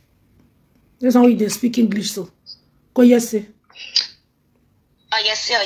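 A woman speaks with animation close to a microphone.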